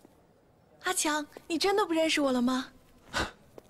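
A young man speaks in a pleading tone, close by.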